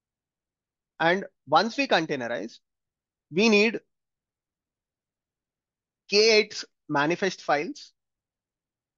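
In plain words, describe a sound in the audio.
A young man speaks calmly and explains into a close microphone, with pauses.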